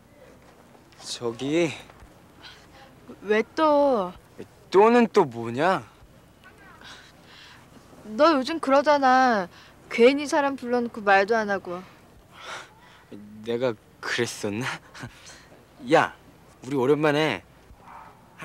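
A young man speaks calmly at close range.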